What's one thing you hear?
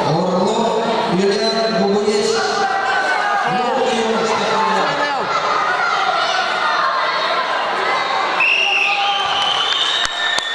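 A crowd of spectators shouts and calls out in an echoing hall.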